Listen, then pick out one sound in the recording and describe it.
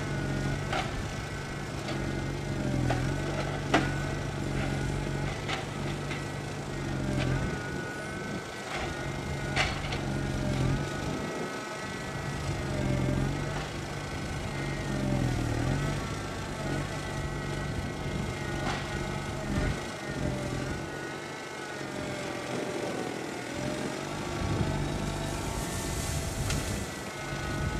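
A diesel forwarder engine runs and rises and falls with load.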